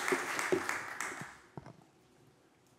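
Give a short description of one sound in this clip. An audience applauds briefly in a large hall.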